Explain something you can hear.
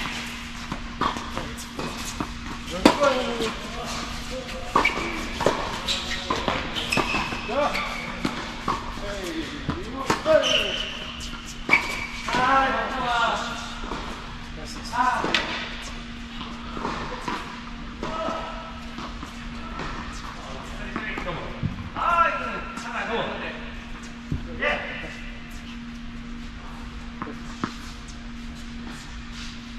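Tennis balls are struck with rackets in a large echoing hall.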